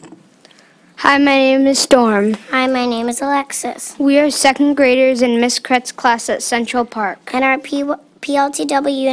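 A young child speaks into a microphone over a loudspeaker, slowly and carefully.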